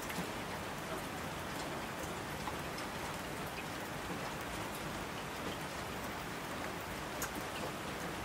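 Torrents of water rush down the slopes.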